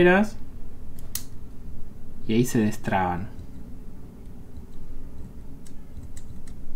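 Small metal scissors click as they open and close.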